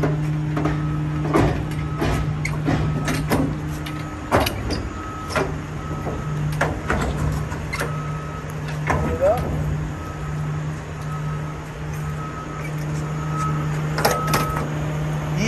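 A metal crank bar clanks and rattles against a trailer.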